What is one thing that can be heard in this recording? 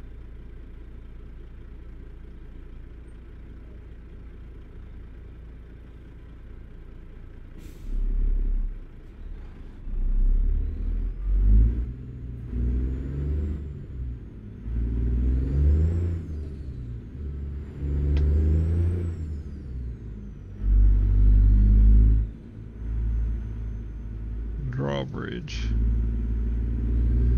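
A truck's diesel engine rumbles low and steady, then revs louder and drops again as it shifts gears.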